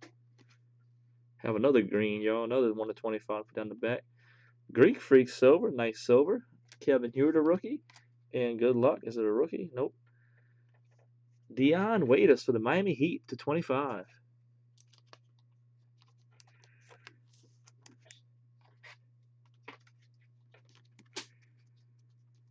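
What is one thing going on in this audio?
Trading cards softly slide and click as hands flip through them.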